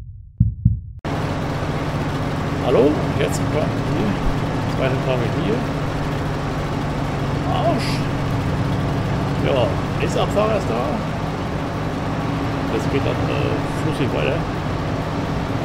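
A harvester engine drones steadily.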